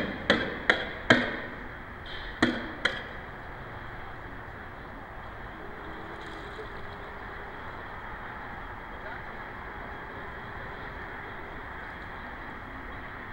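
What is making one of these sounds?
Calm water laps softly.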